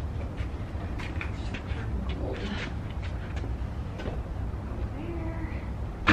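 An exercise bike clatters and rattles as it is tipped and rolled across a hard floor.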